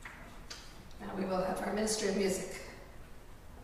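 A person speaks briefly through a microphone in a large echoing room.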